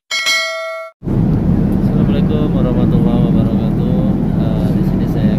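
An aircraft engine drones steadily in the cabin.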